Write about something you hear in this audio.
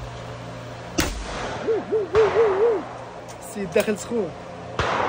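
Shotguns fire loud, sharp blasts outdoors.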